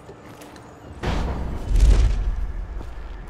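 Heavy footsteps land with a loud thump after a drop.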